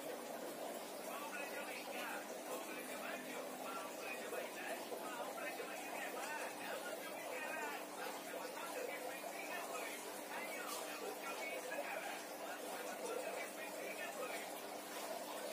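A woman speaks close by in a calm voice.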